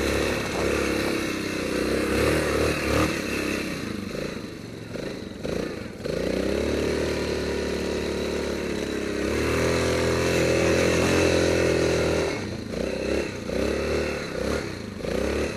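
A single-cylinder ATV engine revs and pulls under load through snow.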